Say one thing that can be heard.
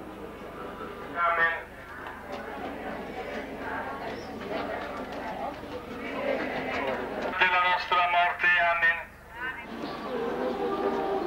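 A crowd of men and women murmurs and chatters outdoors.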